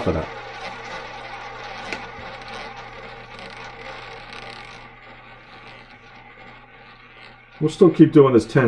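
A roulette ball rolls and whirs around a spinning wheel, slowly fading.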